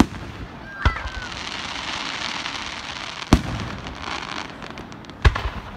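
Fireworks crackle and sizzle after bursting.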